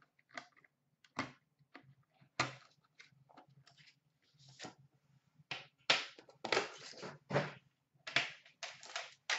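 Small cardboard boxes knock and slide on a glass counter.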